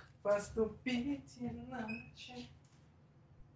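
A young woman speaks casually into a close microphone.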